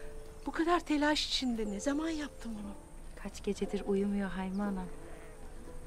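A middle-aged woman speaks warmly and with a smile, close by.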